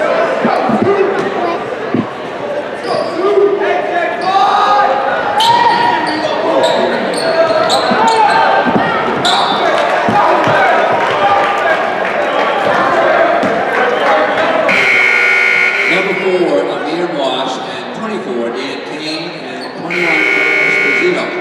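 A crowd talks and cheers in a large echoing gym.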